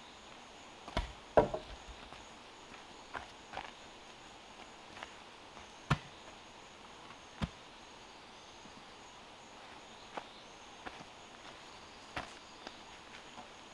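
Footsteps crunch on dry leaves and soil.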